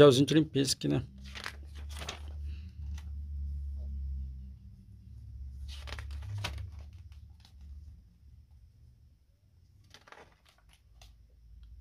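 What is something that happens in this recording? Glossy magazine pages rustle and flap as they are turned.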